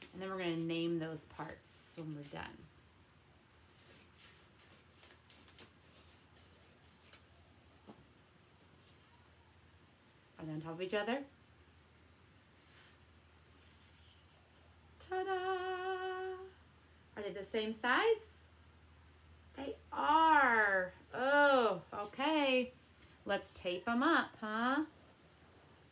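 A young woman speaks with animation close to a microphone, with pauses.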